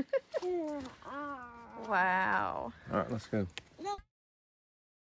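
A young child talks excitedly up close.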